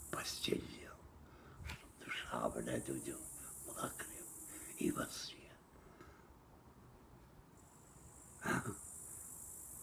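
An elderly man speaks close up, calmly and with pauses.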